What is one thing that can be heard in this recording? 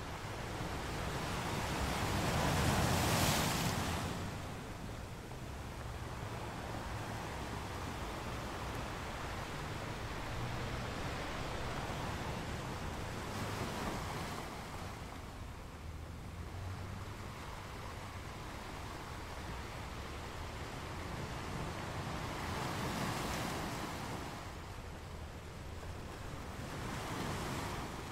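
Surf washes and hisses over rocks close by.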